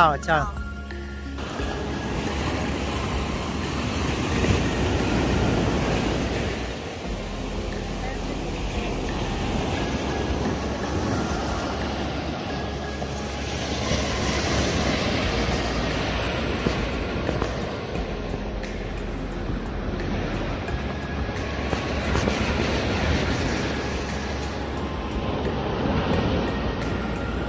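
Waves wash onto the sand and break steadily.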